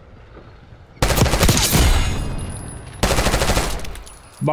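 A rifle fires rapid, loud bursts.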